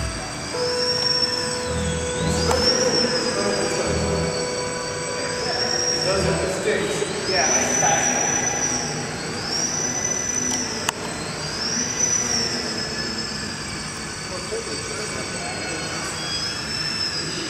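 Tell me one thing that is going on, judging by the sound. A small electric propeller whines high and rises and falls in pitch as a model plane swoops around a large echoing hall.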